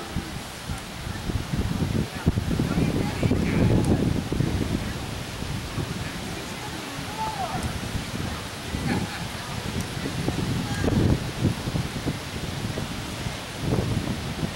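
A crowd of people murmurs and chatters in the distance.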